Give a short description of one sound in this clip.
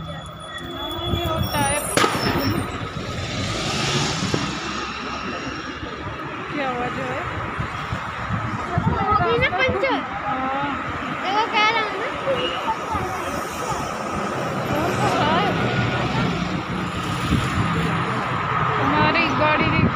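Traffic rumbles past on a busy road.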